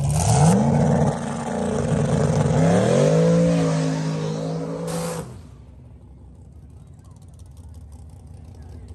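Tyres screech on pavement during a burnout.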